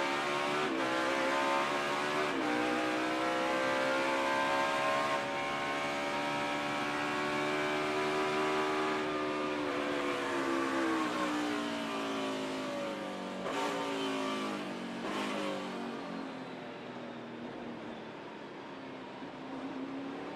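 A race car engine roars up close, its pitch climbing and dropping with gear changes.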